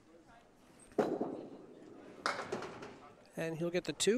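A candlepin bowling ball drops onto a wooden lane and rolls.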